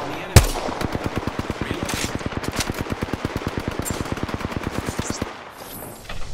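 An automatic rifle fires in a long, rapid burst.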